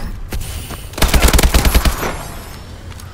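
A rifle fires a rapid burst of gunshots.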